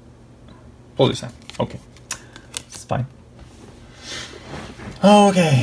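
Trading cards slap and shuffle onto a pile.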